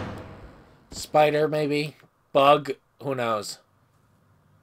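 A deep-voiced man speaks calmly.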